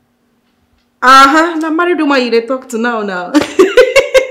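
A woman talks excitedly on a phone, close by.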